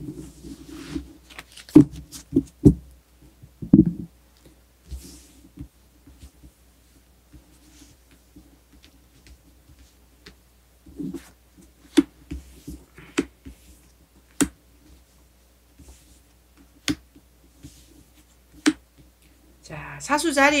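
Playing cards shuffle, slap and tap lightly on a table.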